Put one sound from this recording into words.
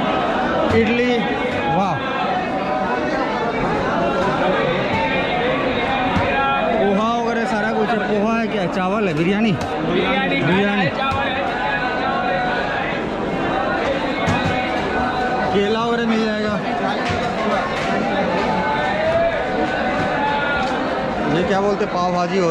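A crowd of men chatter nearby in a busy, echoing hall.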